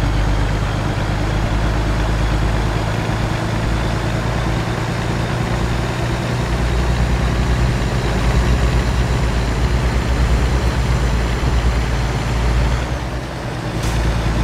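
A truck engine rumbles steadily while driving along a highway.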